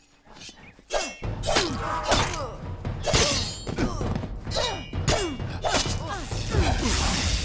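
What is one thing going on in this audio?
Swords clash and strike in a fight.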